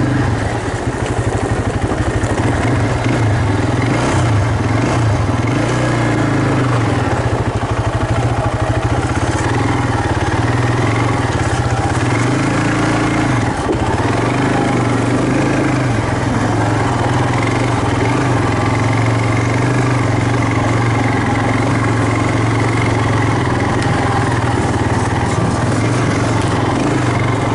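Bicycle tyres roll and crunch over a gravel trail.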